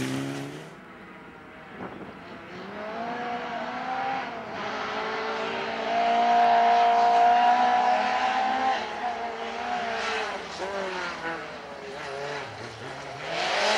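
A second rally car engine revs hard and whines through the gears.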